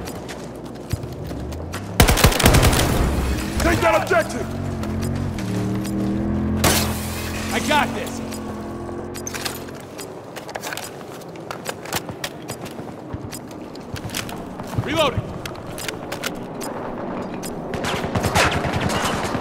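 Gunfire from a rifle rattles in short bursts.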